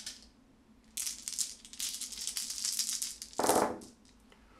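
Dice rattle briskly in a cupped hand.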